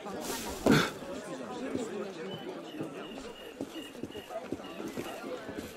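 Footsteps crunch on a gravel street.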